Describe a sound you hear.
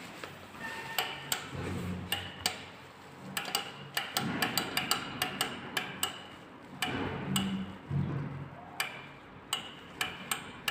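A lift call button clicks repeatedly as it is pressed.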